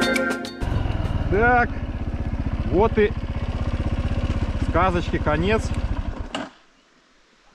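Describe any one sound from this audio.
A motorcycle engine runs and revs up, then cuts out.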